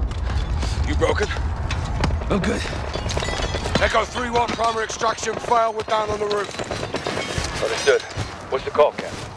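A man speaks briskly, close by.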